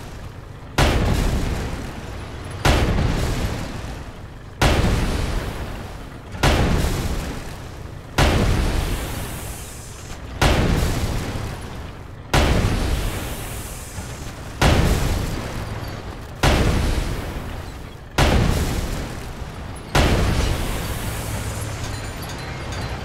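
A tank cannon fires heavy booming shots at a steady pace, each echoing away.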